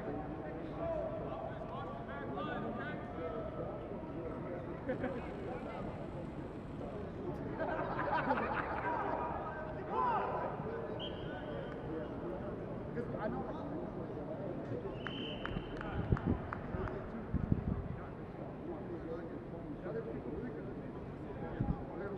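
Players shout and call out to one another across a large open stadium.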